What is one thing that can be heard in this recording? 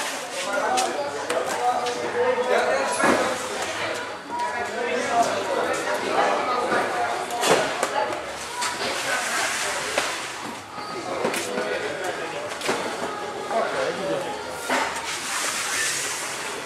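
Cardboard boxes thump onto a van floor.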